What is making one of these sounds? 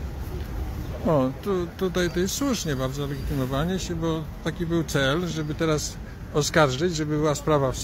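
A man speaks loudly and animatedly close by.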